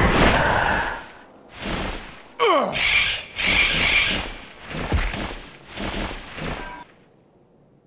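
A pterosaur screeches and flaps its wings.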